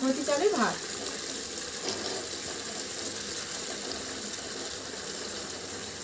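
Dry rice pours softly into a pan.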